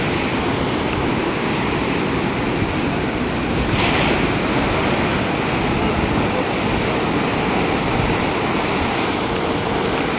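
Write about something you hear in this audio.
Surf rushes and churns steadily.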